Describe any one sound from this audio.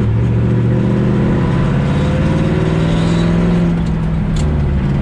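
An old truck's engine drones loudly as it drives.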